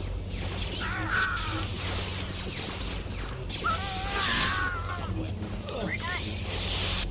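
Blaster shots zap and ring out.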